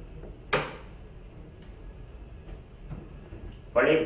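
A heavy wooden lid closes with a thud.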